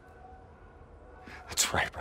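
Another man answers in a calm voice.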